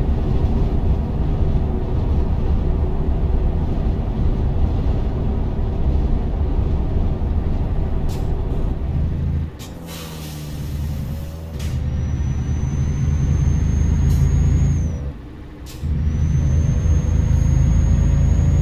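A heavy truck engine rumbles steadily at cruising speed, briefly dropping away twice.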